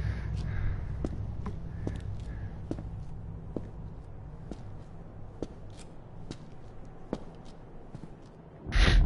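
Footsteps tap slowly on wet pavement.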